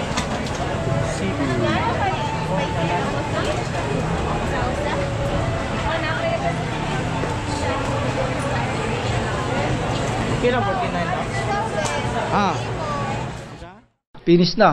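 A crowd chatters and talks all around.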